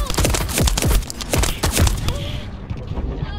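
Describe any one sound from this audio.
Gunfire and blasts crackle loudly in a burst.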